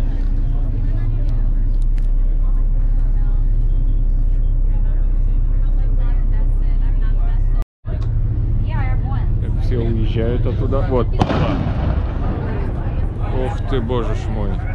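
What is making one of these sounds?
A boat's engine rumbles low and steady.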